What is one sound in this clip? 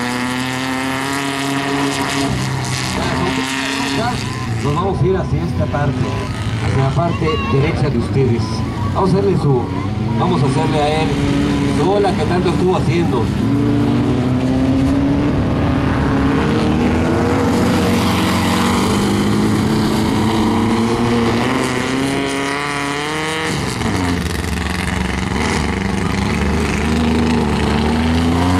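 An off-road rally buggy engine revs hard as it races along a dirt track.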